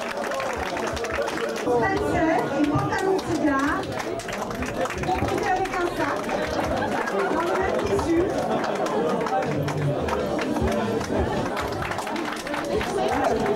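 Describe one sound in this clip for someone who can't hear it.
A crowd of people chatters and calls out loudly in a busy room.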